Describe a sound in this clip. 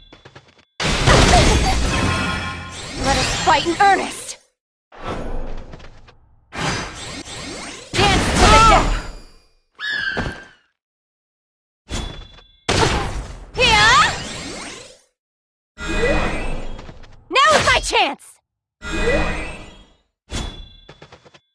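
Magic blasts and explosions burst in bursts.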